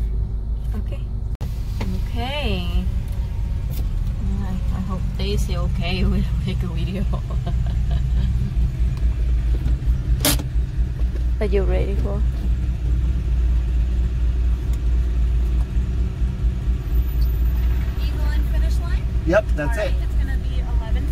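A car engine idles with a steady low rumble.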